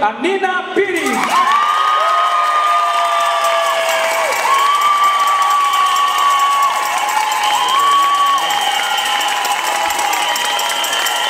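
A group of girls clap their hands.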